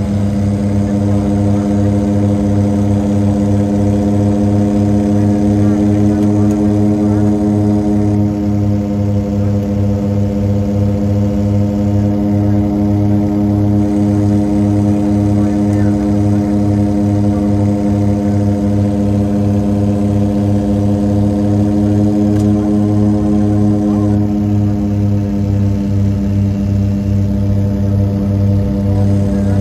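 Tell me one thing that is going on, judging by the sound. A propeller engine drones loudly and steadily from close by, with a throbbing beat.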